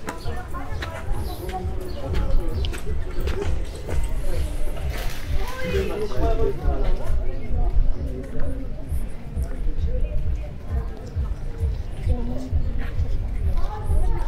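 Passersby chat quietly nearby.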